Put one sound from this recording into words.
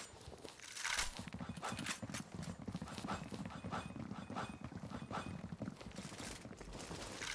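Footsteps run fast and steadily over stone.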